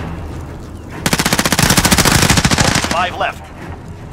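Gunfire rattles.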